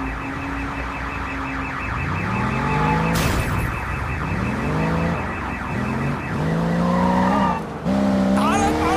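A car engine revs up repeatedly, rising in pitch through the gears.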